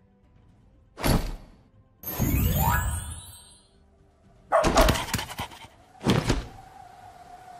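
Short electronic game sound effects chime and whoosh.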